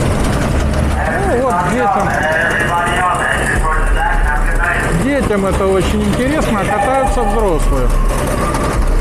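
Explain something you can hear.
Go-kart engines whine and rev as karts race around a track.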